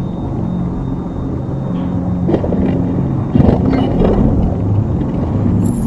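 Metal parts clank and scrape as a robot's leg is pulled off.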